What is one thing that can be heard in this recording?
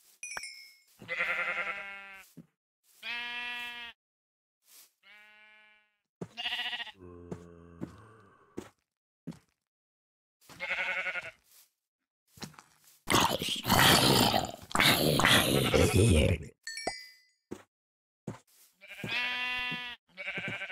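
A sheep bleats several times.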